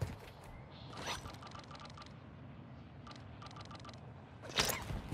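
Short electronic clicks sound as items are picked in a menu.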